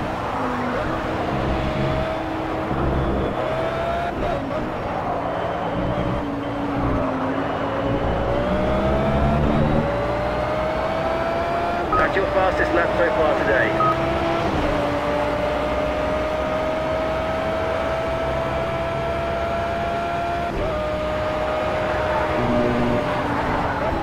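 A racing car engine roars at high revs, climbing in pitch and dropping with each gear change.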